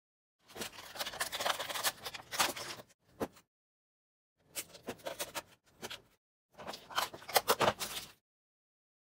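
Snips crunch through thin plastic sheet in short bursts.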